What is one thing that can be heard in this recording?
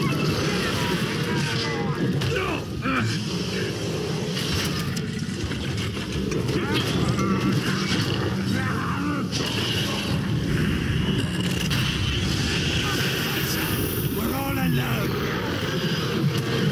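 A large beast growls and snarls.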